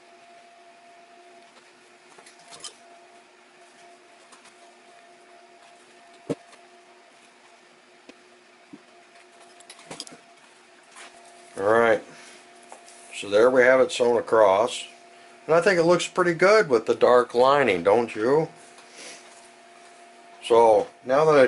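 Soft leather rustles and creaks as hands handle it.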